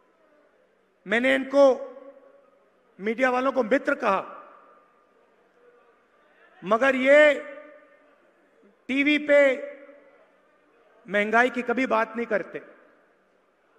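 A man speaks forcefully in short bursts into a microphone, with pauses between phrases.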